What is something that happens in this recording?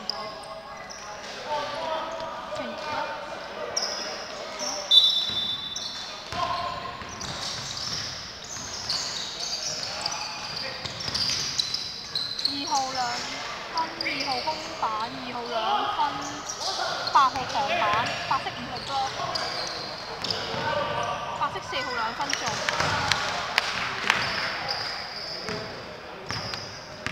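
A basketball bounces on the floor with echoing thuds.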